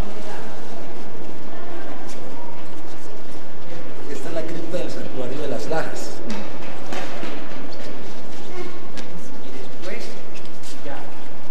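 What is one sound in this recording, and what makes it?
A crowd of people murmurs and talks in an echoing hall.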